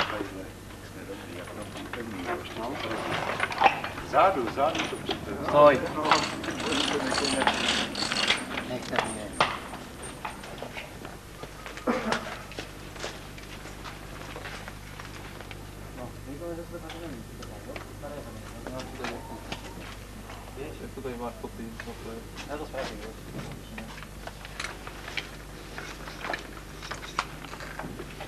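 Metal harness fittings clink and rattle.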